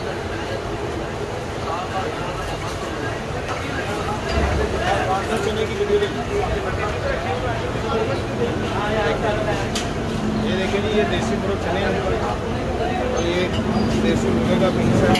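Busy street noise hums in the background.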